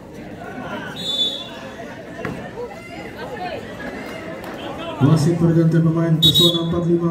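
A referee blows a sharp whistle twice.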